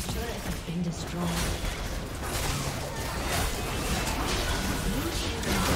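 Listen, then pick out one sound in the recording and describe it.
Magic spells crackle and burst in a hectic fight.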